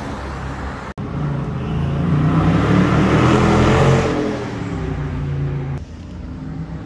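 A sports car accelerates in the distance.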